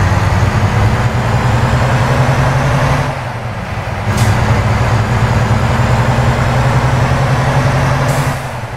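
A truck engine hums steadily at speed.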